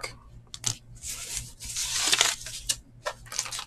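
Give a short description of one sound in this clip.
A card slides into a stiff plastic sleeve with a soft rustle.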